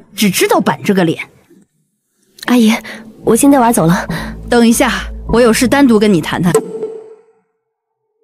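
A woman speaks calmly up close.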